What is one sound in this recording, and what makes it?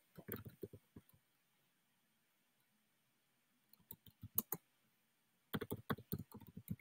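A young woman speaks calmly into a microphone, as if over an online call.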